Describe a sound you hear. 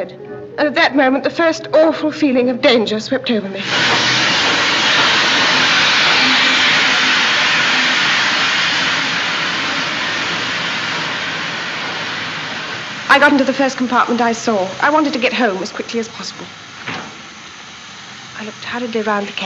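A woman speaks anxiously, close by.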